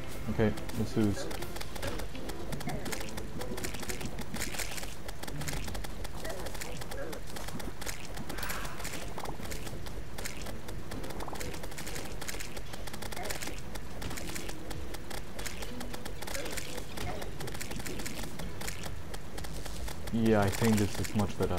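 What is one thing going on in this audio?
Game weapons swish and zap rapidly in a busy battle.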